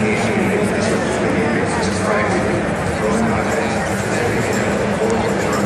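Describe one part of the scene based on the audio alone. A large arena crowd murmurs and chatters, echoing around a big hall.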